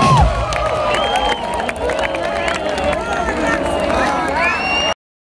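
A large crowd cheers and screams loudly outdoors.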